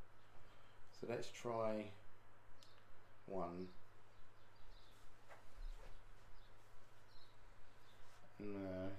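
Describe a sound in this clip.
A middle-aged man speaks calmly and briefly into a nearby microphone.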